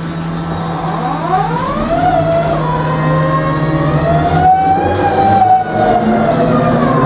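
A bus motor whines up in pitch as the bus speeds up.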